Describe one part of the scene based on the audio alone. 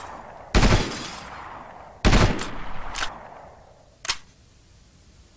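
Rifle shots fire in bursts and echo away.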